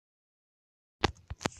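A shovel digs into grassy earth with a soft crunch.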